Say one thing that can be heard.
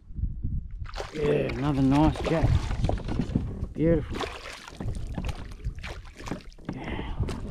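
A hooked fish thrashes and splashes at the water's surface beside a kayak.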